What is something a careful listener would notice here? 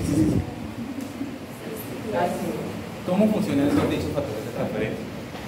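A man talks calmly and with good humour, close by.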